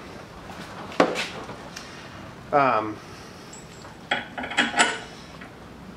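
Metal parts clink and clatter against each other.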